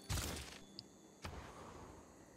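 A short interface click sounds.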